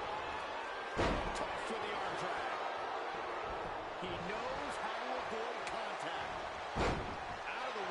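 Heavy impacts thud loudly as bodies hit a wrestling mat.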